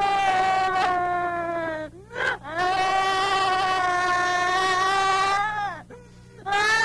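A woman screams in anguish, long and wailing.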